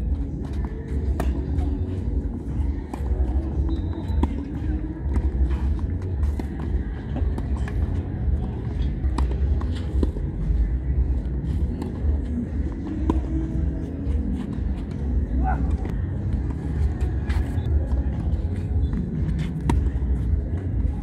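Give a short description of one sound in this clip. Shoes scuff and slide on a clay court.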